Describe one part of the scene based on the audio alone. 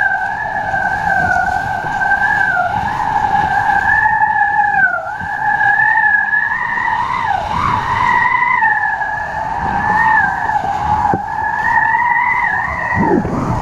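A board skims and splashes across choppy water.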